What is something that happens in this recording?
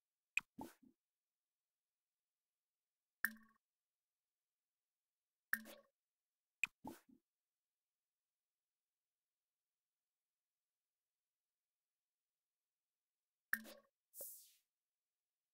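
Short soft interface clicks and chimes sound as a menu pops open and closes.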